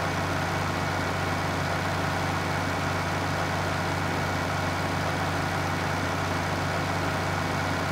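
A harvester engine drones steadily and rumbles low.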